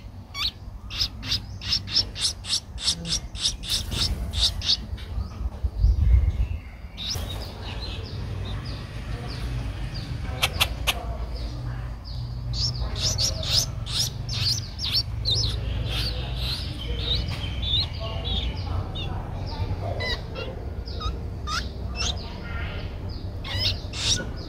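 Baby birds chirp and cheep rapidly from a nest, begging for food.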